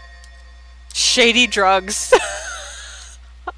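A young woman laughs loudly, close to a microphone.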